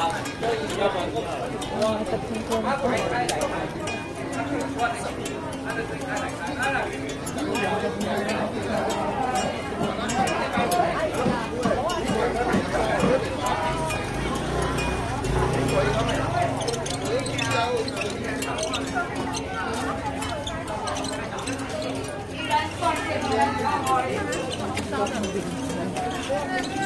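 A crowd of men and women chatters close by.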